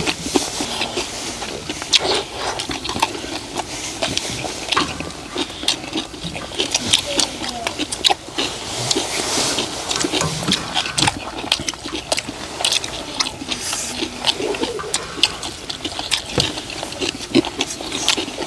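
Chopsticks and spoons scrape and clink against a metal pan.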